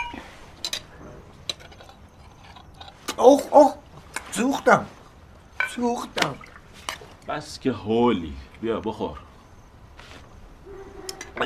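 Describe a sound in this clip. Dishes and spoons clink softly.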